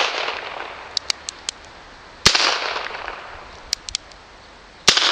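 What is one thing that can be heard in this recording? A revolver hammer clicks sharply as it is cocked.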